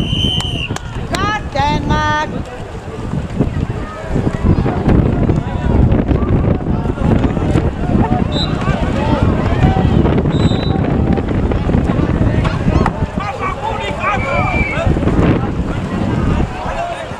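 Players and spectators shout and call out outdoors.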